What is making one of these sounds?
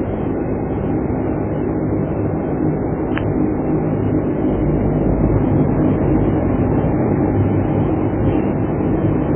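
An aircraft engine hums steadily and loudly.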